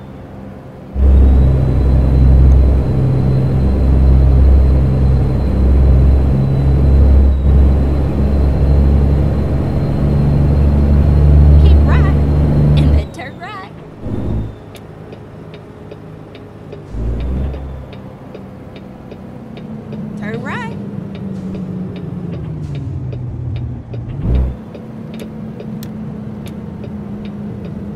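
A truck engine rumbles loudly and deeply, then drops to a quieter drone.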